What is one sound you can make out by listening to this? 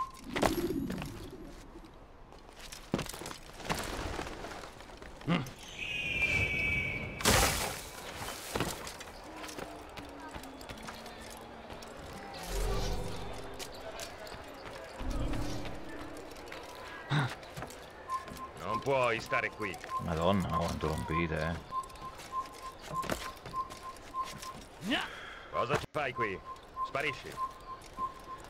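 Footsteps thud on stone and wood as a game character runs and climbs.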